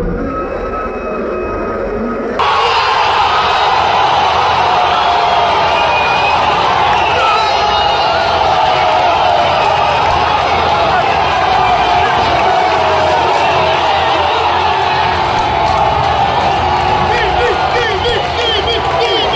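A huge stadium crowd roars and cheers loudly.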